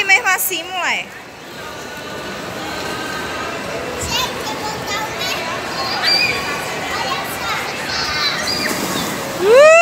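Children and adults chatter in the background.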